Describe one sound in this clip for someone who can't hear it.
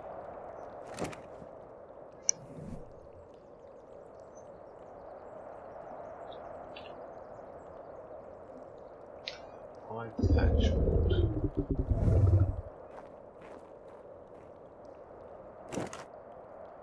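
Short menu clicks sound as an inventory opens and closes.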